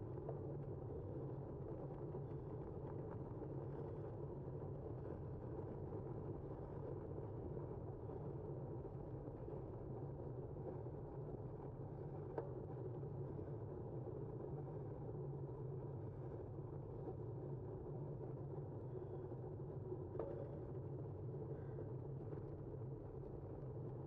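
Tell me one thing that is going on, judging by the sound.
Tyres roll steadily on smooth asphalt.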